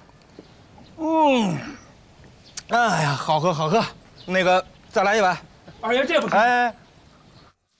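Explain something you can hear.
A man exclaims loudly and talks with animation.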